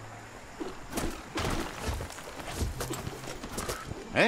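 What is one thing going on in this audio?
A stick thumps against rubber tyres.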